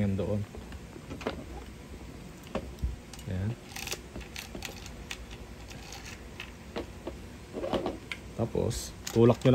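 Plastic parts click and knock together as they are handled.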